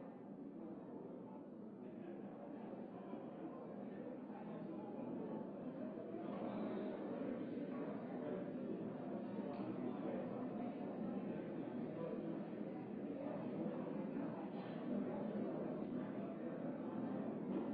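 Many men and women chatter at once in a large echoing hall, growing slightly louder.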